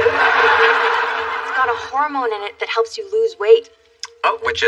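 A young woman speaks with animation nearby.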